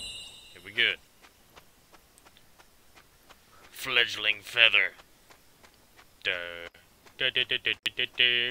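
Footsteps patter quickly along a dirt path.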